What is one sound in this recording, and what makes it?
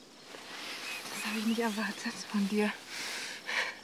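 A woman speaks softly and warmly close by.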